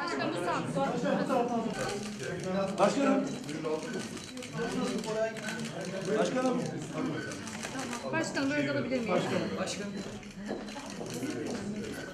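Adult men and women chatter and talk nearby.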